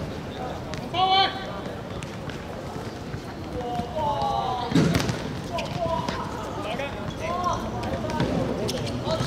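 Men shout to each other across an outdoor court.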